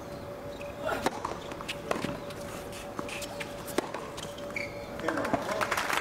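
A tennis ball is struck sharply with a racket several times.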